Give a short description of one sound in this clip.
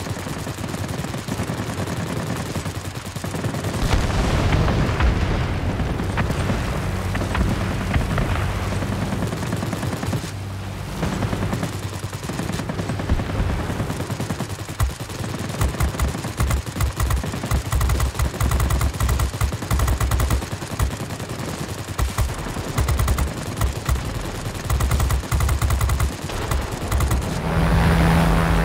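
A propeller engine drones steadily.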